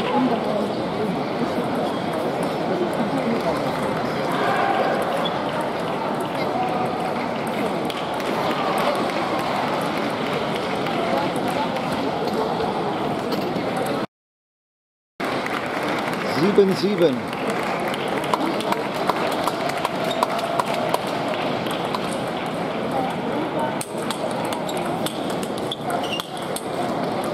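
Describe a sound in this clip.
Voices murmur in a large echoing hall.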